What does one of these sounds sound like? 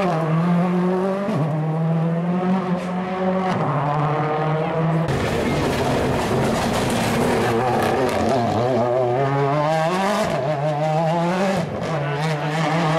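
A rally car engine roars and revs loudly up close.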